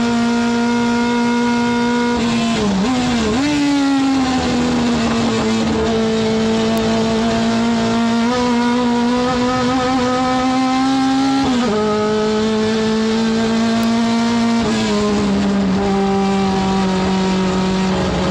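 A race car engine roars loudly from inside the cabin, its pitch rising and falling with gear changes.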